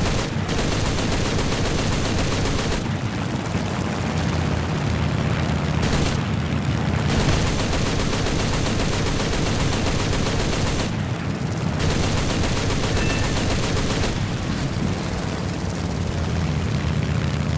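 Anti-aircraft shells burst in a rapid, rumbling barrage.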